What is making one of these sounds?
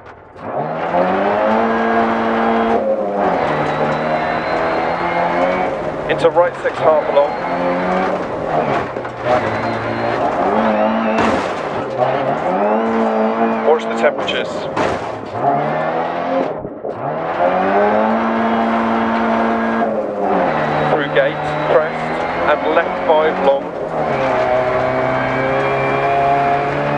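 A small car engine revs hard, rising and falling in pitch with gear changes.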